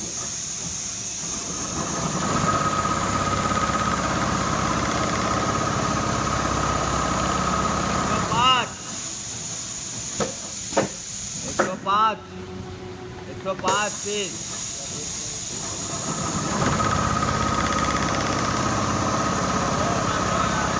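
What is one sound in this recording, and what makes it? Embroidery machines whir and chatter rapidly and steadily in a large hall.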